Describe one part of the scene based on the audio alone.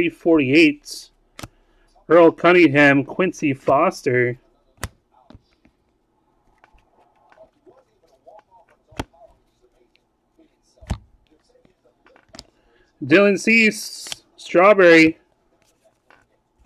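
Trading cards rustle and slide against each other.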